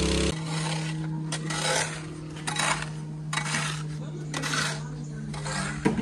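A stiff broom scrubs a rough concrete floor in short strokes.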